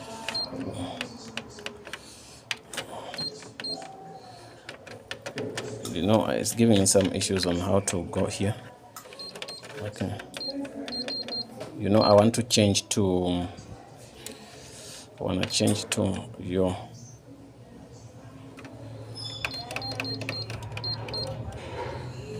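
A machine's keypad gives short, high beeps.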